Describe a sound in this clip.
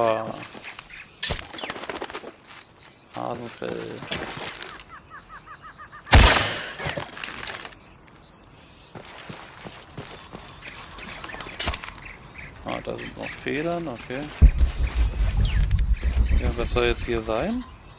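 Footsteps patter on earth and leaves.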